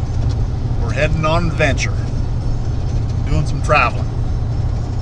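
An older man talks with animation close to a microphone.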